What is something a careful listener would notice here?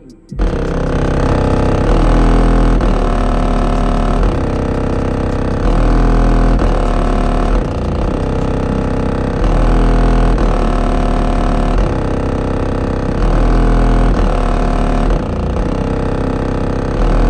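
Loud music with deep, pounding bass plays from inside a car.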